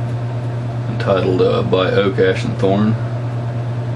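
A man speaks briefly and calmly, close by.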